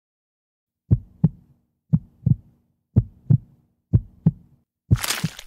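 A ragdoll toy thumps against a wall again and again.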